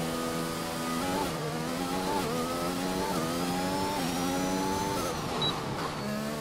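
A racing car engine revs up and roars through rising gear shifts.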